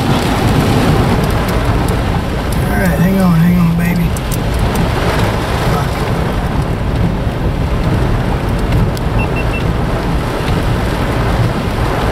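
A windshield wiper swishes across the glass.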